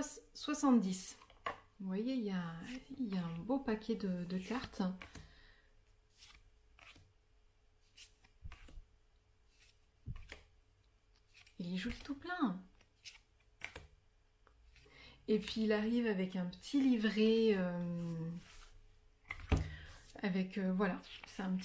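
A young woman speaks calmly and warmly close to the microphone.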